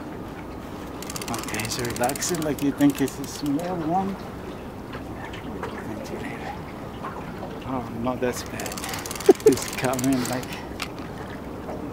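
A fishing reel's drag clicks and buzzes.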